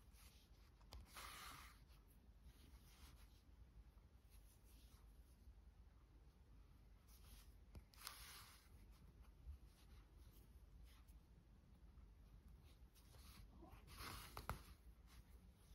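Yarn rustles softly as it is pulled through knitted fabric.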